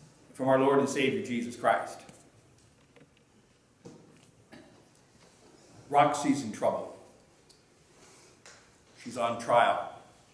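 A middle-aged man speaks slowly and clearly in phrases with pauses, heard through a microphone in a room with a slight echo.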